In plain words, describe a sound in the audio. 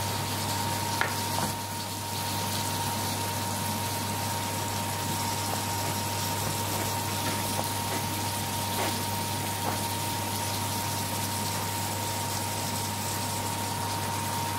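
A knife cuts through raw meat and taps on a wooden board.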